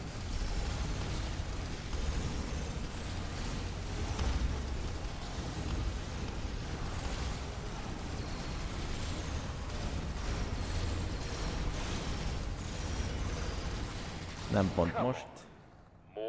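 Game gunfire and explosions clatter in a dense, steady roar.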